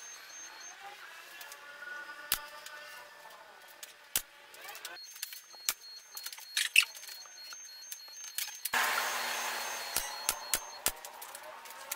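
Hands knock and tap on a wooden board.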